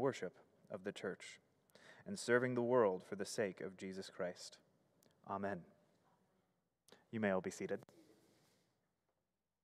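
A young man reads aloud calmly through a microphone.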